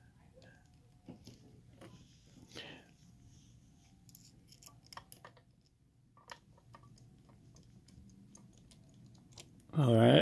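A metal pick scrapes and clicks softly inside a lock.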